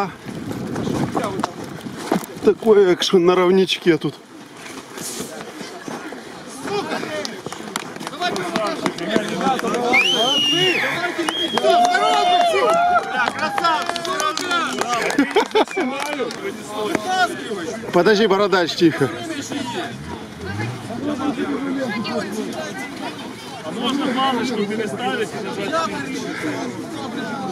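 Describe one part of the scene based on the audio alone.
A crowd of men and women talk and shout all around outdoors.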